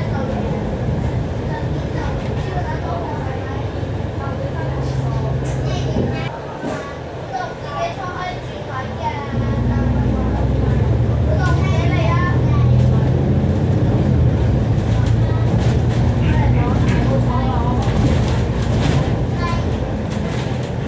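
A diesel double-decker bus engine drones as the bus drives.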